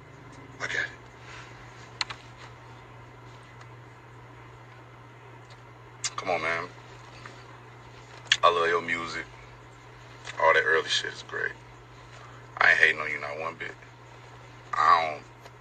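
A man talks with animation in short bursts, close to a phone microphone.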